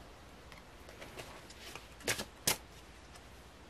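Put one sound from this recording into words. Playing cards slap softly onto a cloth-covered table.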